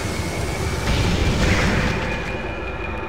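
An energy blast bursts with a loud boom.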